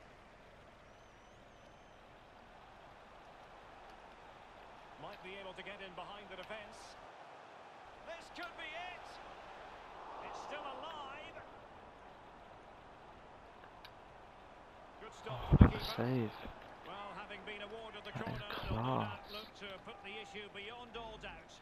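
A stadium crowd murmurs and swells into a cheer.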